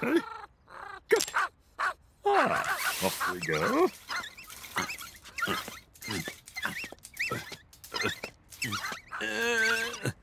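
A man mumbles and grunts in a nasal, silly voice.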